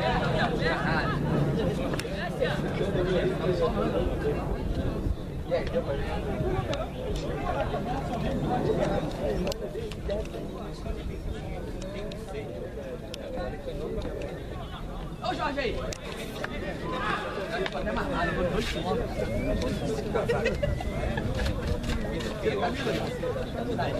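Young men shout to each other across an open outdoor field.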